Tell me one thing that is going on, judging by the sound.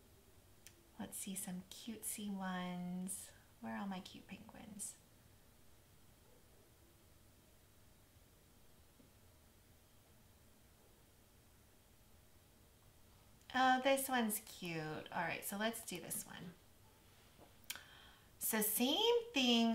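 A woman talks calmly into a close microphone, with pauses.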